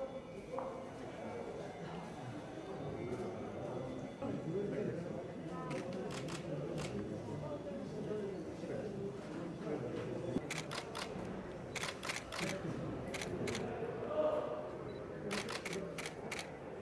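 Several men and women murmur and talk quietly nearby.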